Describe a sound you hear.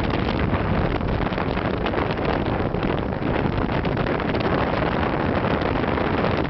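Strong wind rushes and buffets against a microphone in flight.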